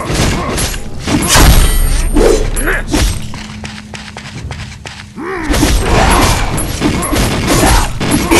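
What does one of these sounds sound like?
Creatures grunt and groan.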